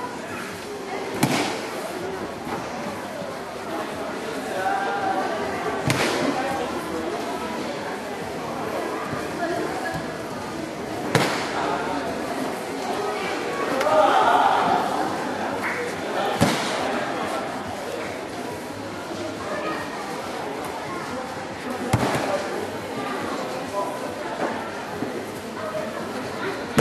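A crowd murmurs quietly in the background.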